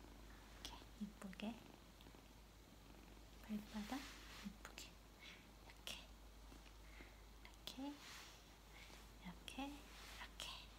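A woman speaks softly and briefly close by.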